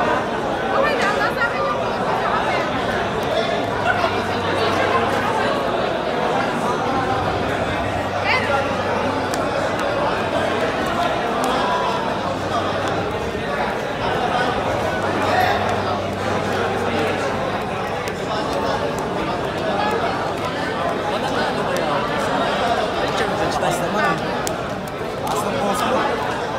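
Playing cards rustle and snap as they are shuffled by hand.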